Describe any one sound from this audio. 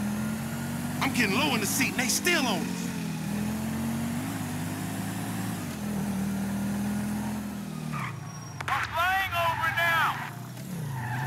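Car tyres screech on pavement.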